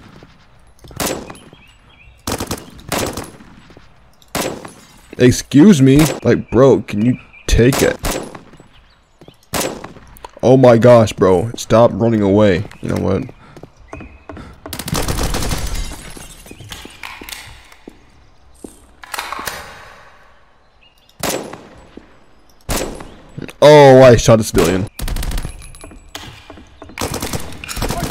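Gunshots crack sharply in short bursts.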